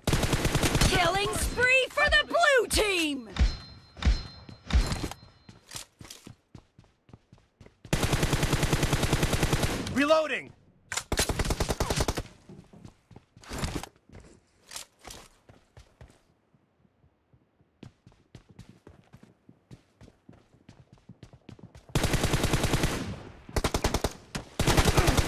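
An automatic rifle fires rapid bursts of gunshots up close.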